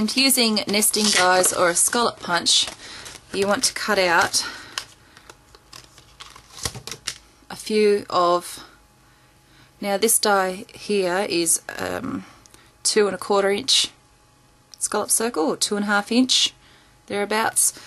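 Paper and plastic rustle as they are handled.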